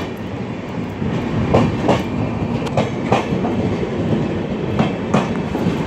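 A train rumbles slowly along the tracks.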